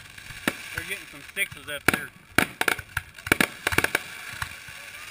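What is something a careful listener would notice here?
Fireworks crackle and fizz after bursting.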